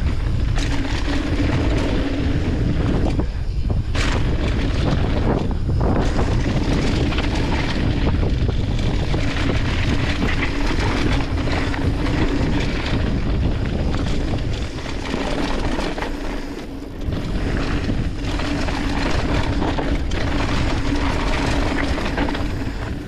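Wind buffets the microphone at speed.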